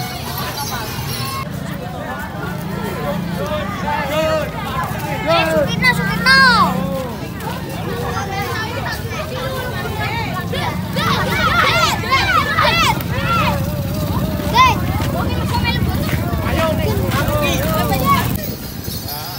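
A crowd of children shouts and cheers excitedly close by.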